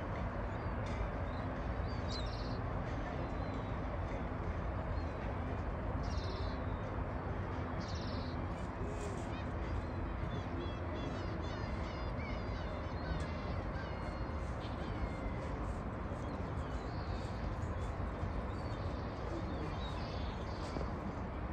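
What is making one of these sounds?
Water laps and ripples gently outdoors.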